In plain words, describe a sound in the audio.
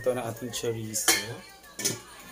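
A metal pot lid clinks.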